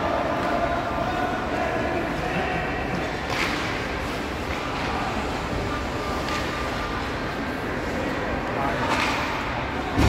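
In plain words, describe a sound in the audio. Ice skates scrape and hiss across an ice rink.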